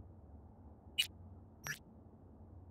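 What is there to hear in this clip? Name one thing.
A short electronic beep sounds as a menu opens.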